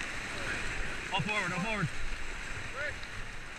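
Men in the raft shout with excitement close by.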